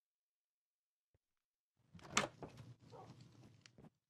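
A wooden door opens with a knock.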